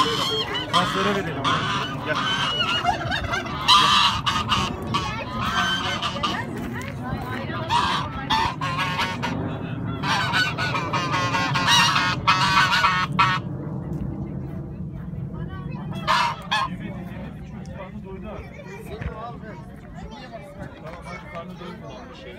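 Children and adults chatter and call out nearby, outdoors.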